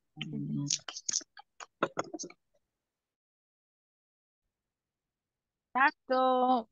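A woman speaks quickly over an online call.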